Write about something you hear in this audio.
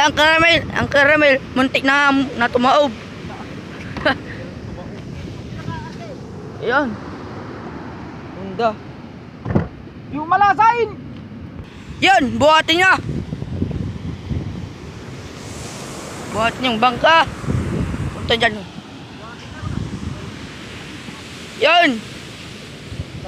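Young men talk and call out to each other nearby.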